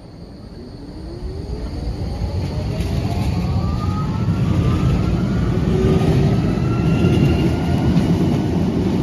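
A tram glides along a platform with a rising electric whine.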